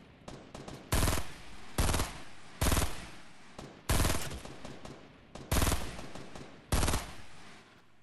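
A rifle fires several loud single shots.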